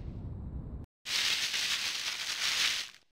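A game character's spin dash whooshes and rushes.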